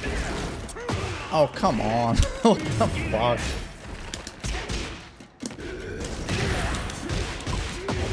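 Punches and kicks thud and crack in a fighting game.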